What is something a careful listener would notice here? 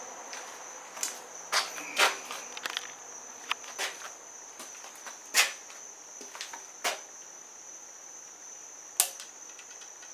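A compound bow knocks and clicks as it is handled up close.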